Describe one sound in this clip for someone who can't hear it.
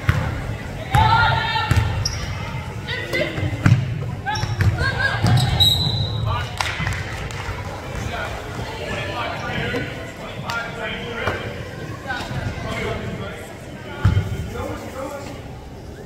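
Players and spectators shout and call out in a large echoing gym.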